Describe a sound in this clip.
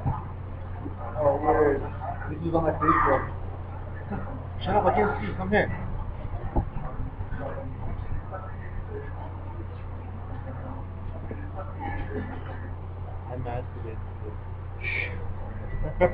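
Young men talk casually, close to a microphone.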